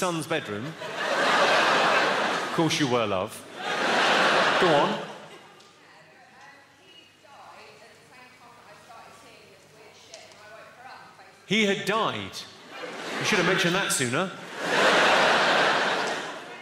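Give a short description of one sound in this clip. A large audience laughs and applauds loudly.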